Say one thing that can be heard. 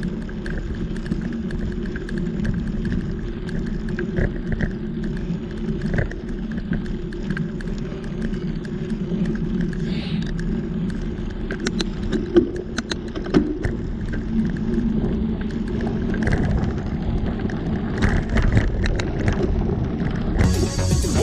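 Knobbly bicycle tyres rumble steadily over a sandy dirt track.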